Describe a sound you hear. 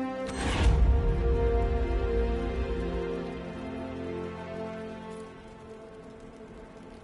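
A bright musical chime rings out and slowly fades.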